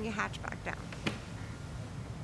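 A car's tailgate swings shut with a thud.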